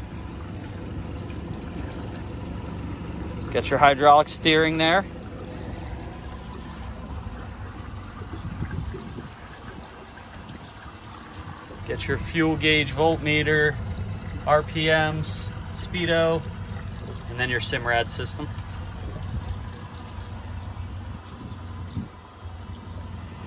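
An outboard motor idles with a low, steady hum.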